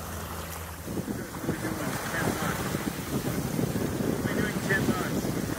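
Water rushes and splashes along a sailing boat's hull.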